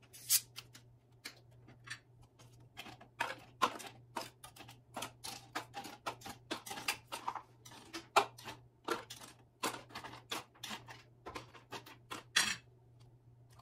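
Ice cubes clink as tongs pick them from a metal bucket.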